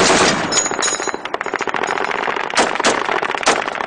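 An assault rifle fires shots outdoors.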